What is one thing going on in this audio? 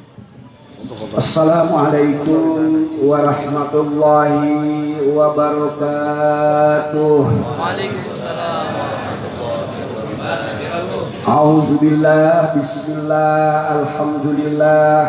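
An elderly man chants in a long, drawn-out melody through a microphone and loudspeakers.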